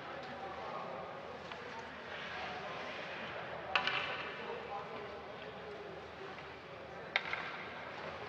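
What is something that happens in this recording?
Hockey sticks click against the puck.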